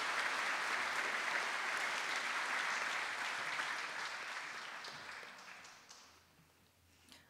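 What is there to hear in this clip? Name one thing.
An audience applauds in a large hall, the clapping slowly fading away.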